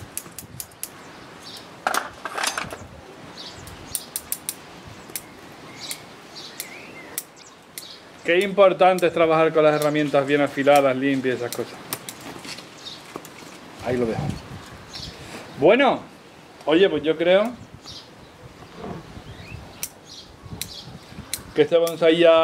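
Small shears snip leaves and twigs.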